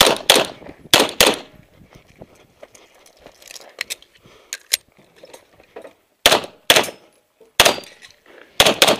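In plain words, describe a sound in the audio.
A pistol fires loud sharp shots in quick pairs outdoors.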